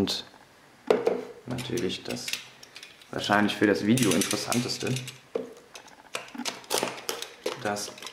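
A plastic container rattles and clicks as a lid is handled.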